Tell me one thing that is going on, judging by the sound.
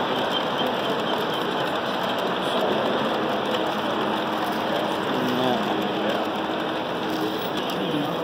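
A model train rattles along its track.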